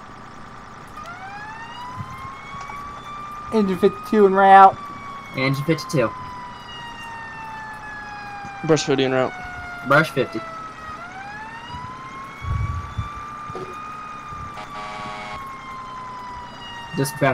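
A siren wails, rising and falling slowly.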